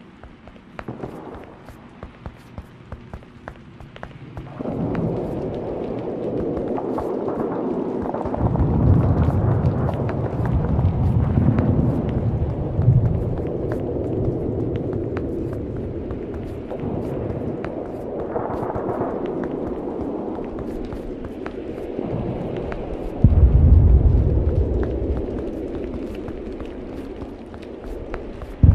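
Quick footsteps crunch on dry ground and grass.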